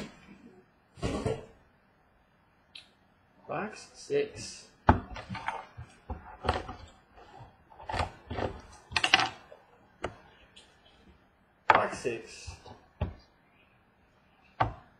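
Cardboard rustles and scrapes close by.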